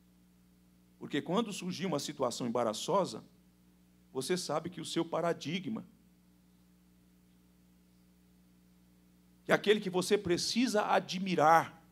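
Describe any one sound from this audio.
A man speaks with animation into a microphone, in short bursts with pauses.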